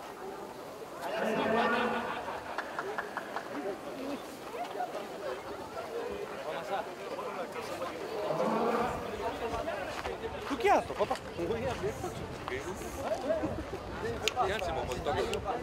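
Several men talk nearby outdoors, their voices overlapping.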